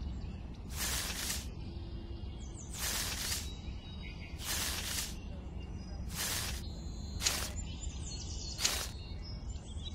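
Plastic wheat stalks rustle as a hand moves them.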